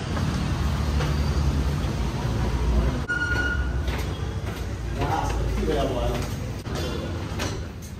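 Footsteps walk along a hard floor.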